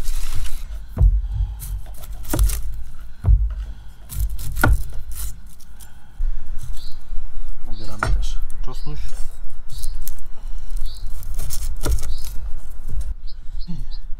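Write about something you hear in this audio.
A knife chops on a wooden board with sharp knocks.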